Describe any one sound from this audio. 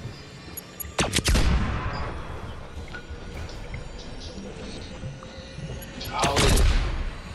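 Gunshots crack in a video game.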